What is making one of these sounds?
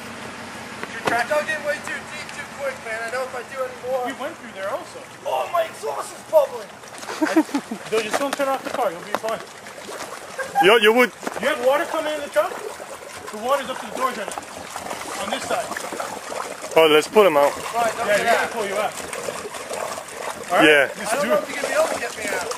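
A man talks and shouts excitedly close by.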